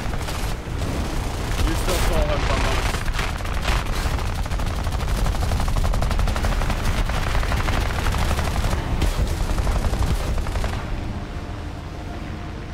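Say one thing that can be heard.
A propeller plane engine roars steadily.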